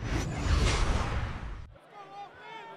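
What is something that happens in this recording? A loud whoosh sweeps past.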